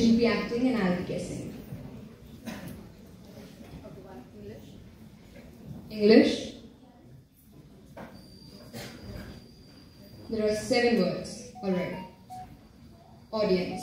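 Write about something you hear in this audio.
A young man speaks with animation into a microphone, heard over loudspeakers in a hall.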